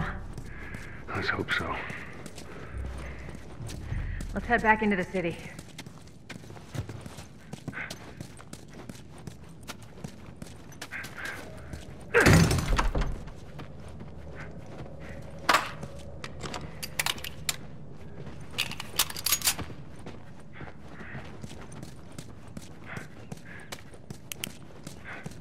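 Footsteps patter steadily on a hard floor.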